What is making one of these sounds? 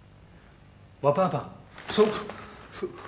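An elderly man speaks calmly nearby.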